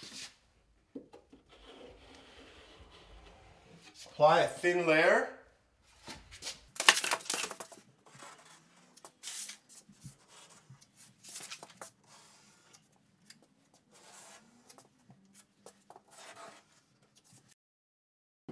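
A knife blade scrapes along a wall.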